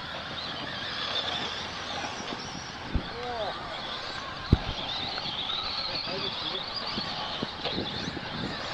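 Electric radio-controlled trucks whine as they race on a dirt track.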